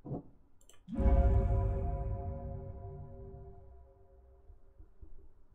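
A low, ringing chime swells and slowly fades.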